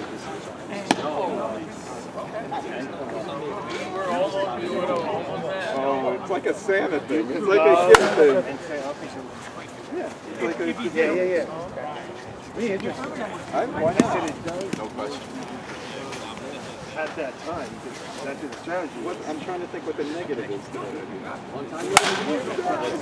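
A bat cracks sharply against a ball, several times.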